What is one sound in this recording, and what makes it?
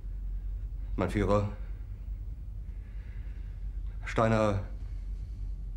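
A middle-aged man speaks quietly and hesitantly close by.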